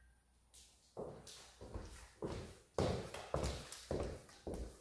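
Boots thud in steps on a wooden floor.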